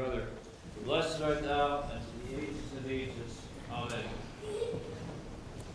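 A man chants in a deep voice in a large echoing hall.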